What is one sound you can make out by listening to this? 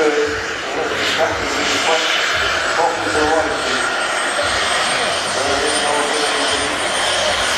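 A jet engine roars loudly.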